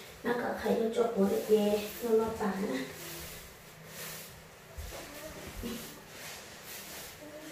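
A broom sweeps across a floor with soft brushing strokes.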